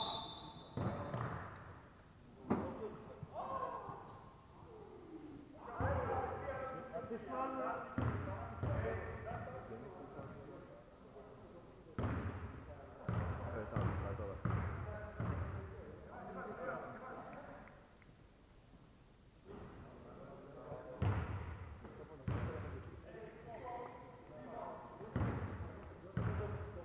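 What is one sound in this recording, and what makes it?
A basketball bounces on a hard court in a large echoing hall.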